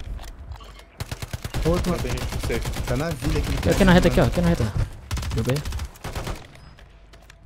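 Rapid bursts of gunfire rattle close by.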